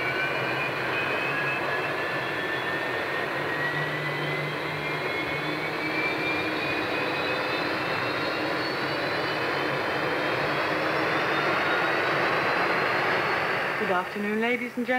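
A jet engine whines loudly, its pitch slowly rising.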